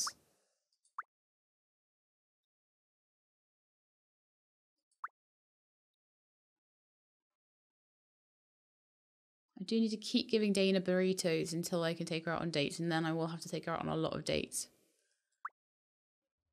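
A short soft blip sounds as a menu page turns.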